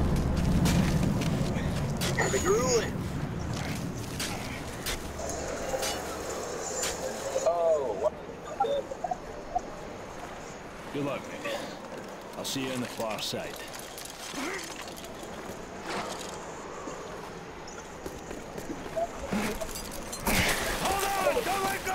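Ice axes strike and chip into ice.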